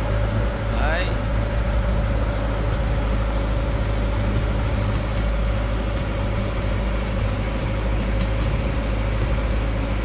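Water splashes and laps against a moving boat's hull.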